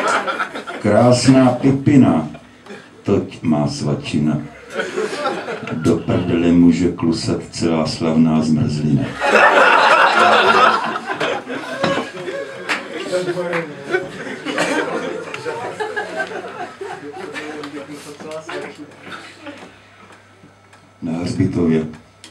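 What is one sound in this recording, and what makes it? An elderly man reads aloud into a microphone with feeling.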